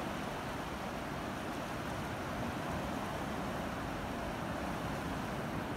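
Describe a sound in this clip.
Waves wash steadily onto the shore.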